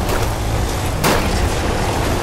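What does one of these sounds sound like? A loud impact thuds as the vehicle lands.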